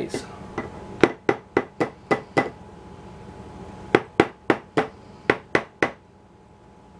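A hand blender knocks repeatedly against the rim of a glass jar.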